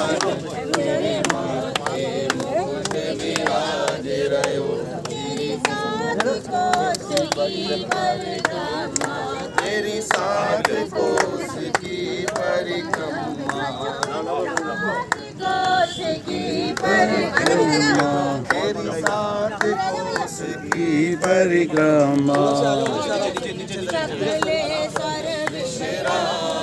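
A crowd of men and women talk and chatter close by, outdoors.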